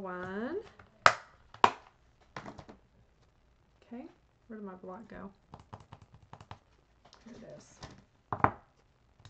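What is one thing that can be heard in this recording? Paper and card rustle and tap on a table.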